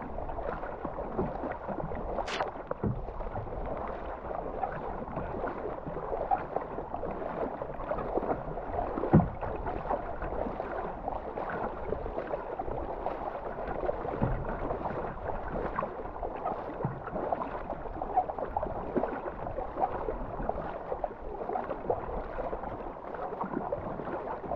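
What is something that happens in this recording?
River water rushes steadily outdoors.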